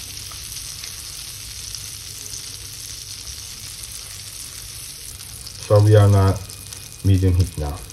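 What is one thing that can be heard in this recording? A wooden spoon scrapes against a pan.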